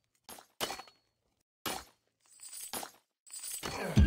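Weapons clash and strike in a game battle.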